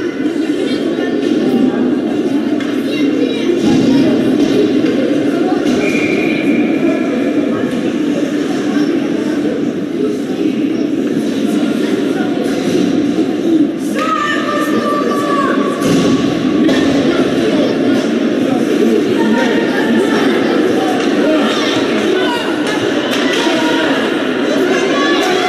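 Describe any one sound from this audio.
A crowd of spectators chatters and calls out in a large echoing rink.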